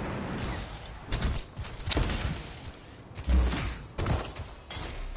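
Guns fire in rapid bursts with sharp impacts.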